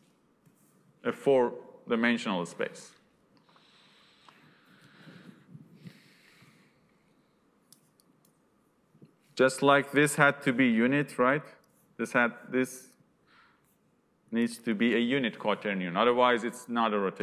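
A man lectures through a microphone, speaking calmly in bursts with pauses.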